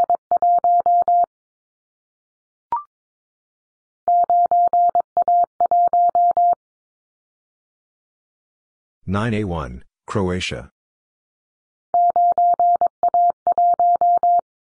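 A telegraph key taps out quick, even Morse code beeps.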